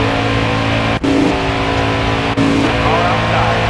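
A race car scrapes and bumps against a wall.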